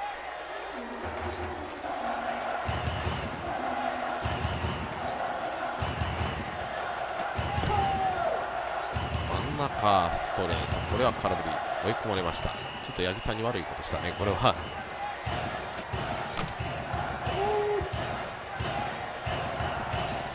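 A stadium crowd cheers and chants steadily.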